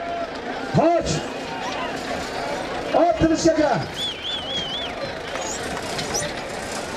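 A large crowd outdoors murmurs and shouts.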